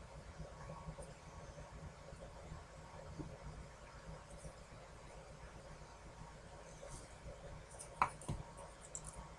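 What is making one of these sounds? A rubber stamp taps down on paper.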